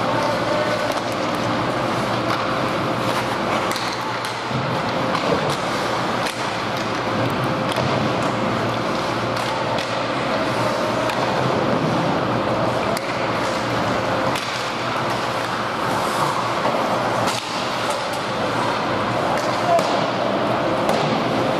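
Spectators murmur in a large echoing hall.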